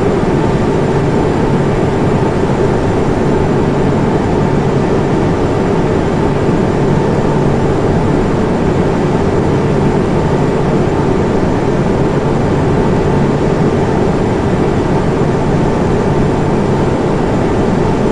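Jet engines roar steadily with a constant low hum.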